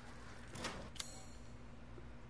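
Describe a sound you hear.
A short menu click sounds.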